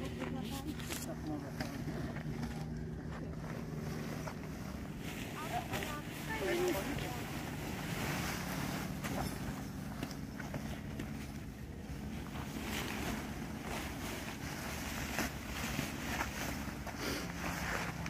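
Heavy fabric rustles and swishes as it is gathered.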